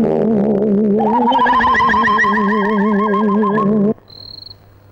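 A young boy screams loudly.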